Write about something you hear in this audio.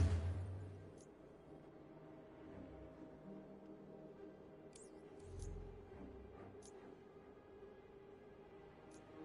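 Soft interface clicks sound now and then as menus change.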